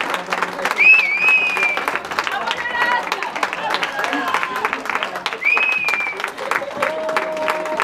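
A group of women sing together in a large echoing hall.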